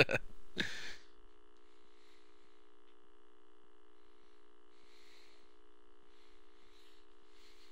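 A steady electronic test tone hums.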